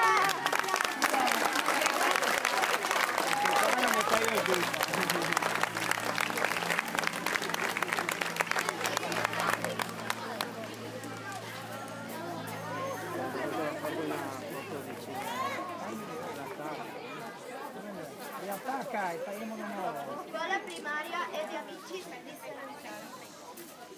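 Children chatter and call out nearby.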